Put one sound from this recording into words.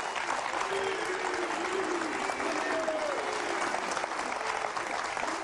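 A studio audience claps and applauds loudly.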